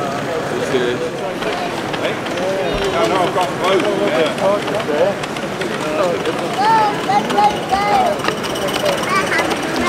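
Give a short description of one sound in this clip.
A crowd of adults chatters in a large echoing hall.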